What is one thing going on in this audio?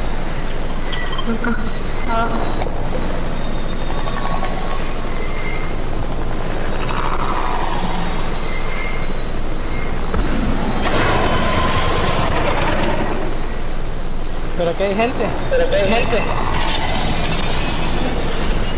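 A helicopter's rotor whirs steadily overhead.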